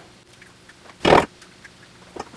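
An egg cracks against a metal bowl.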